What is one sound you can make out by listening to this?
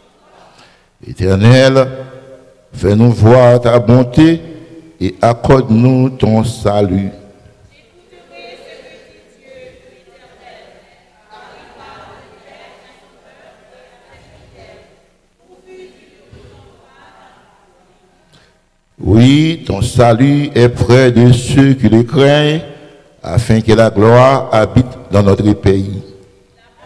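A man speaks fervently into a microphone, heard over loudspeakers in a reverberant hall.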